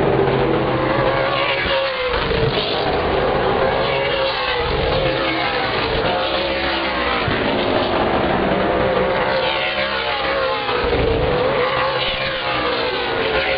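Engines rise and fall in pitch as cars speed past close by.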